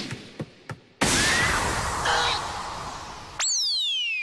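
A sudden heavy blow lands with a whooshing rush.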